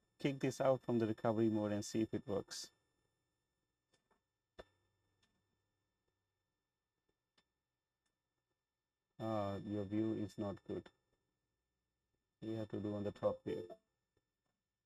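A young man speaks calmly and closely into a microphone, in short bursts with pauses.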